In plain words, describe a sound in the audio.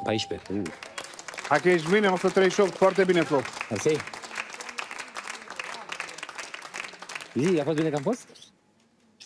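A crowd of people applauds.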